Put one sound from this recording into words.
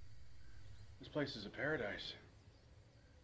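A man speaks quietly and calmly, close by.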